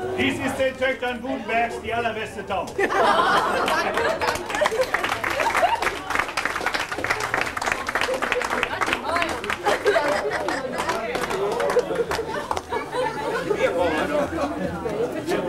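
A crowd of men and women chatter and laugh loudly outdoors.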